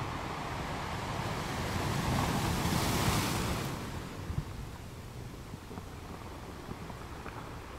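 Surf washes and fizzes over rocks.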